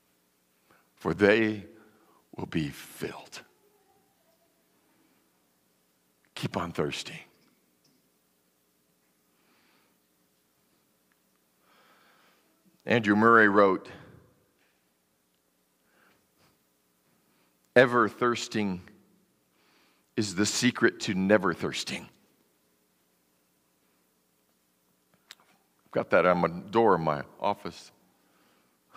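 A man speaks with animation through a microphone in a large room, pausing between phrases.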